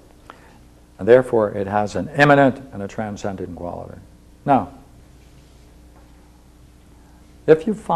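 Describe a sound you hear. An elderly man lectures calmly, with pauses between phrases.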